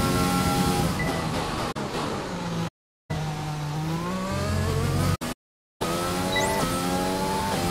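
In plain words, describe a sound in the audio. A racing car engine drops in pitch as the car slows, then revs up again.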